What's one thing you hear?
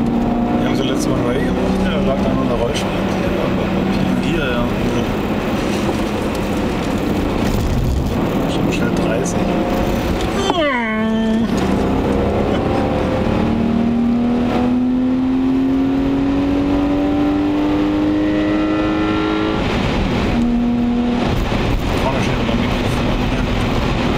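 A car engine roars loudly, revving up and down through the gears.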